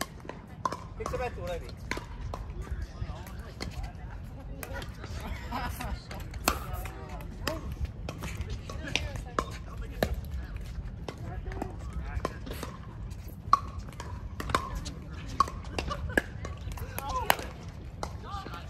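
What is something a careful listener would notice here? Paddles sharply pop against a plastic ball, back and forth.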